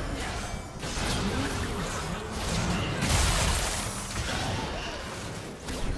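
Magic blasts burst with loud booms.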